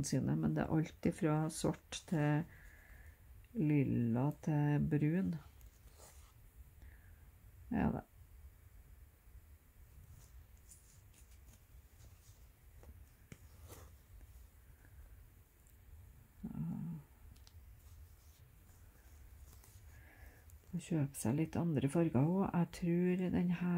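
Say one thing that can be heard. Thread rasps softly as it is pulled through fabric.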